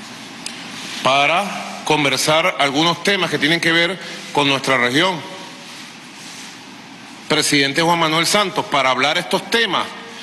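A man speaks formally into a microphone.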